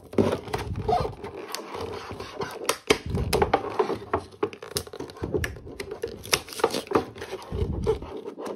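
Cardboard toy boxes rustle and tap as hands handle them.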